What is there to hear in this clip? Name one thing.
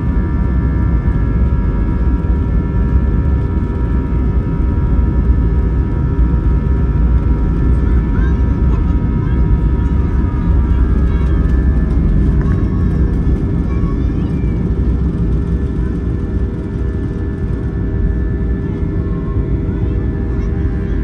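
Jet engines roar loudly at full power with a steady whine.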